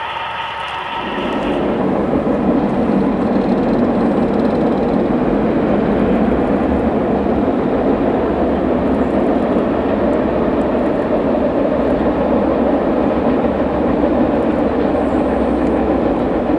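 A model train rumbles and clatters steadily along its tracks.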